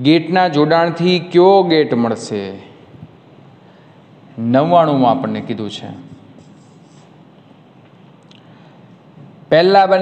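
A young man explains calmly and clearly, close by.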